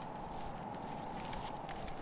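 Paper rustles as it is unfolded.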